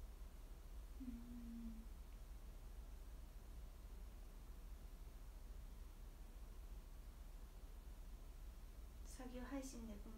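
A young woman murmurs softly, close by.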